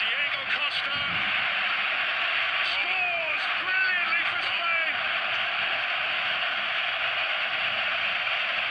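A large crowd roars steadily in a big open stadium.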